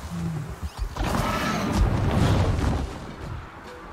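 Wind rushes loudly past as a flying creature glides through the air.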